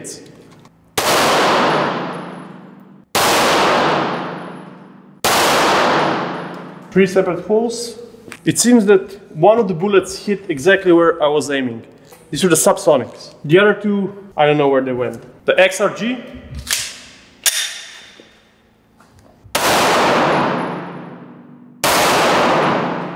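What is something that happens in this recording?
Gunshots ring out loudly, echoing through a large hall.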